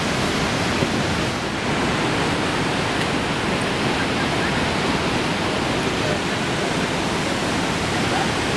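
A huge waterfall roars and thunders steadily close by.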